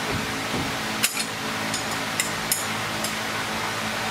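Metal parts clink and tap as a man handles them.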